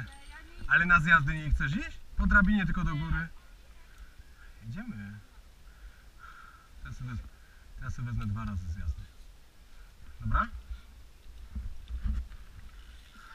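A young man talks loudly and excitedly close by, outdoors.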